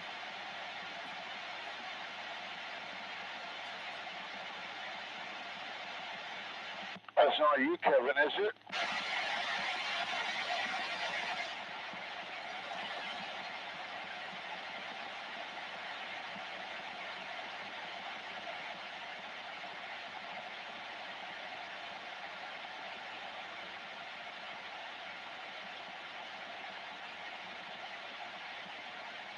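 Static hisses steadily from a radio loudspeaker, with a brief louder burst of noise.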